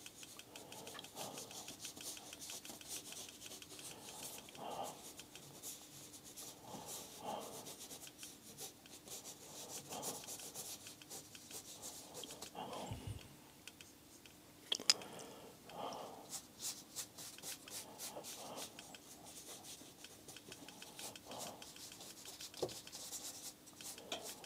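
A brush dabs and scrapes softly on paper.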